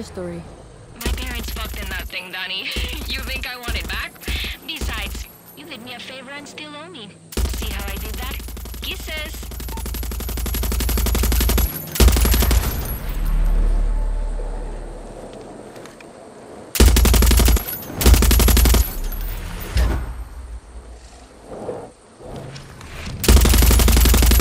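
A heavy machine gun fires rapid bursts close by.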